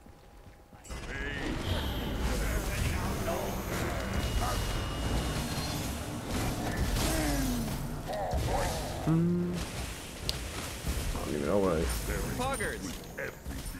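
Magical blasts crackle and boom in a fight.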